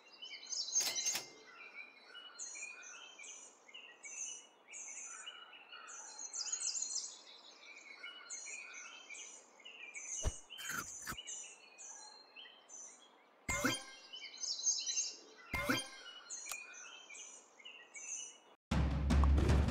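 Short game sound effects chirp and click as pieces move.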